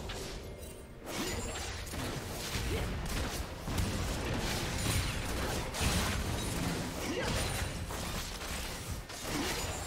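Spells burst and crackle in a noisy fantasy battle.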